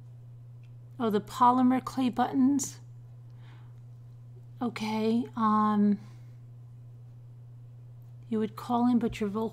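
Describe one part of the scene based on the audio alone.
A woman speaks calmly and close into a microphone, in short bursts with pauses.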